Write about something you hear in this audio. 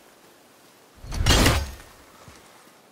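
An axe strikes with a loud crash.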